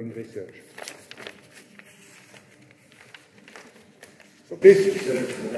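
Paper rustles as a man leafs through pages.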